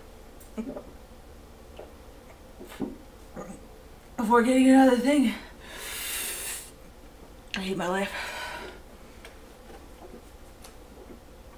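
A young woman gulps a drink from a bottle.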